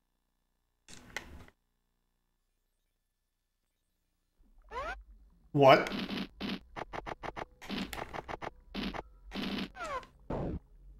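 Short electronic blips sound as game menu selections are made.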